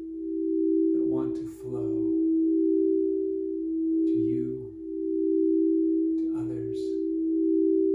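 A middle-aged man speaks calmly and softly, in short phrases.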